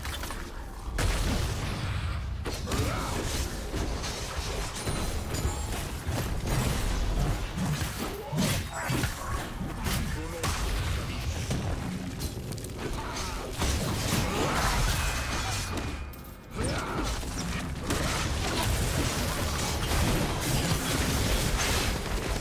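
Magic blasts, whooshes and hits clash in a fast fantasy battle.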